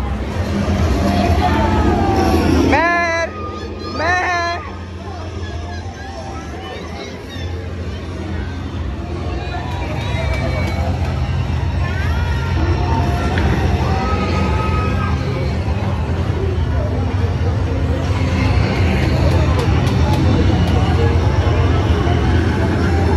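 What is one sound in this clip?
Arcade game machines play loud electronic music and sound effects in a busy echoing hall.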